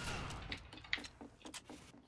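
A shotgun is loaded with clicking shells.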